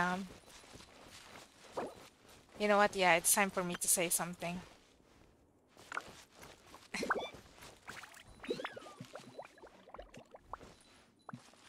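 Light footsteps patter on a stone path.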